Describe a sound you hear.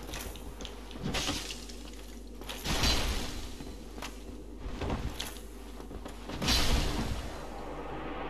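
A sword swishes through the air in heavy swings.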